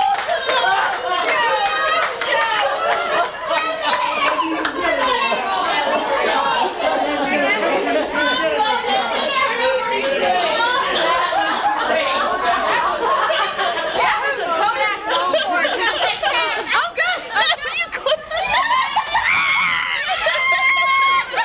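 A crowd of men and women chatter loudly nearby.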